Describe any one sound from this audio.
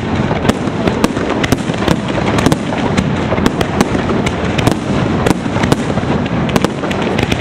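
Fireworks crackle and pop rapidly overhead.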